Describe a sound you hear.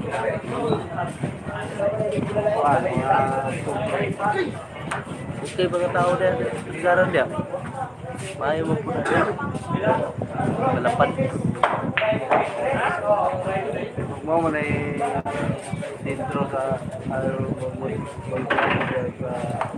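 Several people talk and chatter nearby in a lively room.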